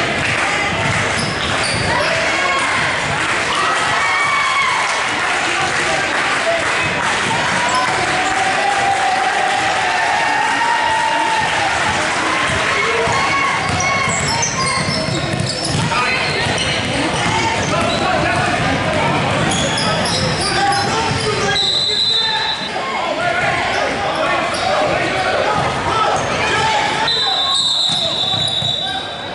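Spectators chatter and shout throughout a large echoing gym.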